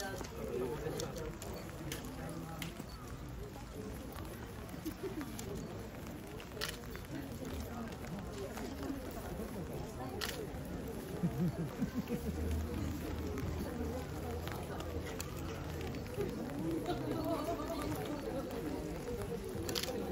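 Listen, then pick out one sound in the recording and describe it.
Several young women chat quietly nearby.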